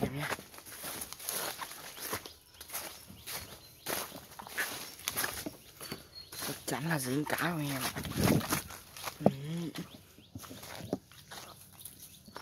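A young man talks close by, in a low, casual voice.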